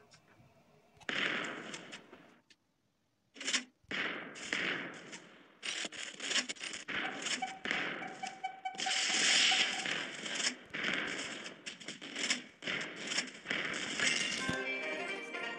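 Naval guns boom in rapid bursts.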